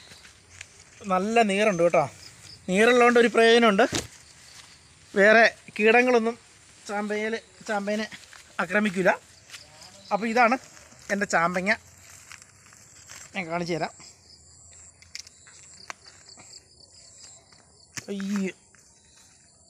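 A man talks calmly and close by, in short phrases.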